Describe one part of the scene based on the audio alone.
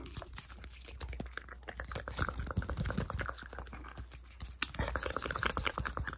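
Fabric of a knitted sweater rubs and brushes against a microphone.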